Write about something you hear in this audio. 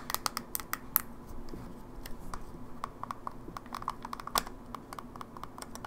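Fingertips press and click plastic buttons.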